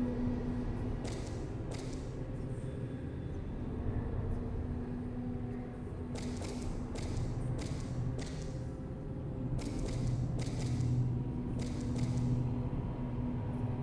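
Footsteps tread slowly on a stone floor.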